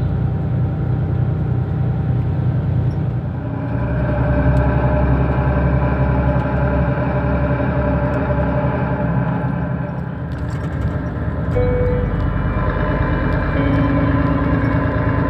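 A vehicle rumbles and hums steadily while moving, heard from inside.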